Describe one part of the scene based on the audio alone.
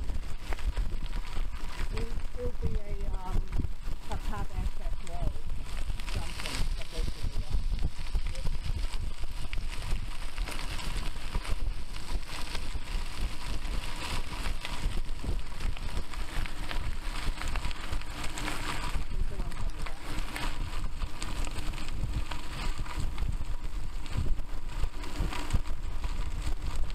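Bicycle tyres crunch and rattle over a gravel track.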